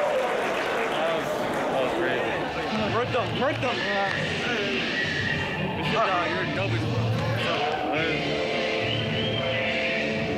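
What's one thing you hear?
Young men talk and laugh excitedly close by.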